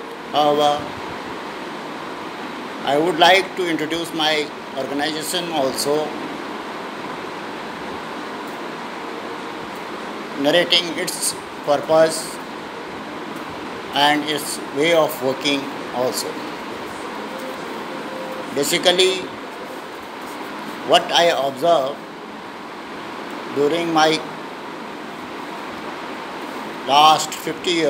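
An elderly man speaks calmly and close, in short phrases with pauses.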